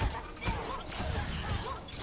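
An icy blast whooshes and crackles.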